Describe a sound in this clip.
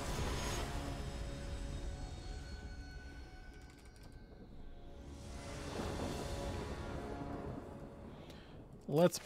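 Dramatic game music swells and fades.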